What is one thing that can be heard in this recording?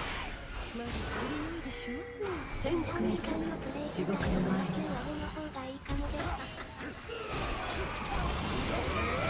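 Spell effects whoosh and crackle in a video game.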